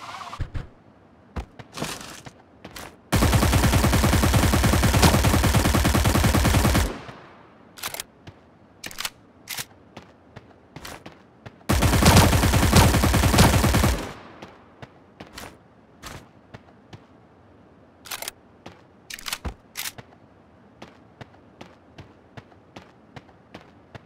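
Single gunshots crack at intervals.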